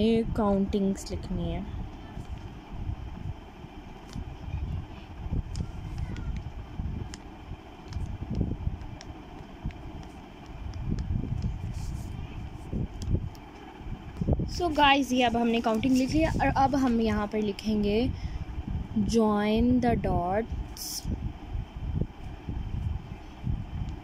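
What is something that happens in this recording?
A pen taps and scratches on paper, up close.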